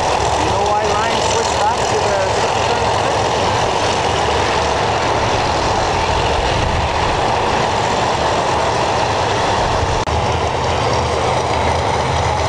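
A loud race car engine rumbles and idles close by.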